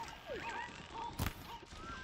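A bowstring creaks as a bow is drawn.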